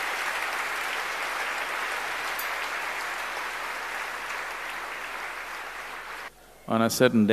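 A large crowd applauds.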